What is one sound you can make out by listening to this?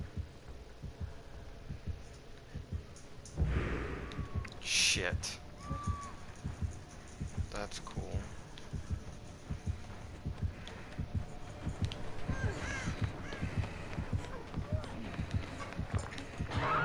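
Footsteps thud softly on a hard floor at a steady pace.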